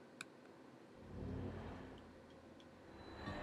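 A stone lift rumbles low as it moves.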